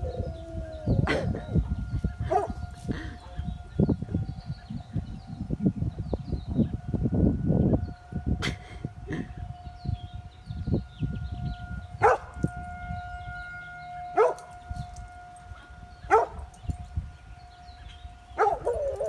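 A large dog barks in short, sharp bursts.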